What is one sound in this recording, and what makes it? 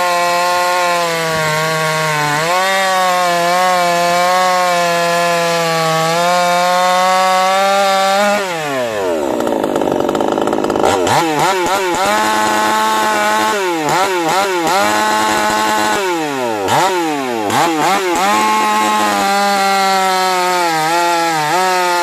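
A chainsaw engine roars loudly while cutting through a log.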